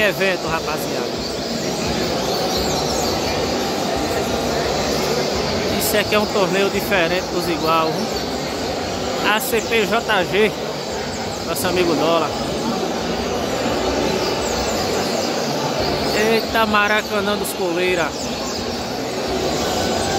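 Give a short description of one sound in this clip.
Many caged songbirds chirp and trill in a large echoing hall.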